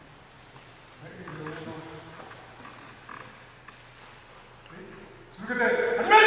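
An elderly man calls out commands loudly.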